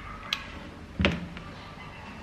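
A glue gun is set down on a table with a sharp knock.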